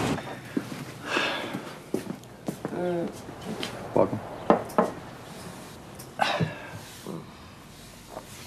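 A young man speaks, close by.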